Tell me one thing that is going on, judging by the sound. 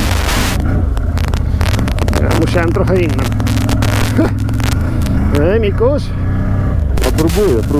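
Quad bike engines rumble and rev nearby.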